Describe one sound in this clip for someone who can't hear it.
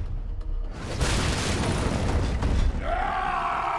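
An explosion booms nearby with a rushing roar.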